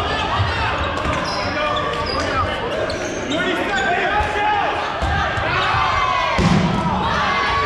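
Balls bounce and thud on a hard floor.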